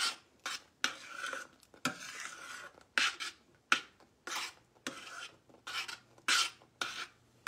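A metal spoon scrapes and clinks against a saucepan while stirring a thick sauce.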